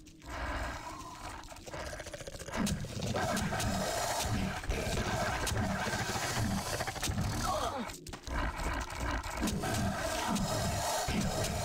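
A sword slashes and strikes creatures.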